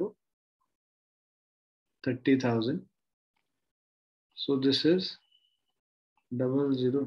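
A man speaks calmly and clearly into a close microphone, in short phrases with pauses.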